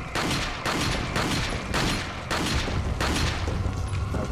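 Gunshots fire in quick succession.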